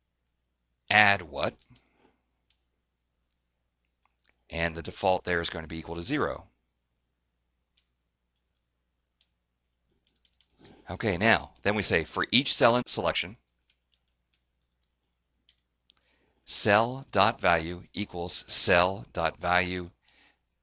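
A man talks calmly into a close headset microphone, in short bursts with pauses.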